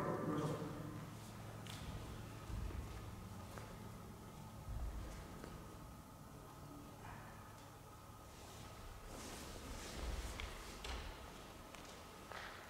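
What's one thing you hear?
Bare feet thud and slide on a wooden floor in a large echoing hall.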